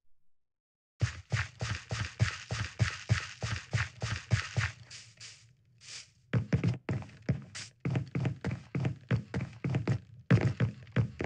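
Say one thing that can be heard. Footsteps fall in a quick even rhythm over grass.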